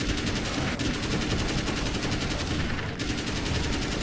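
A gun fires repeatedly.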